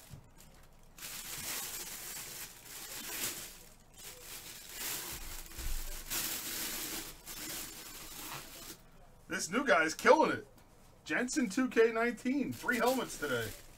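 A thin plastic bag crinkles and rustles.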